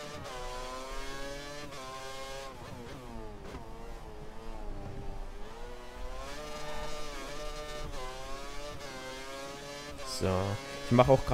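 A racing car engine whines, its pitch rising and falling with gear changes.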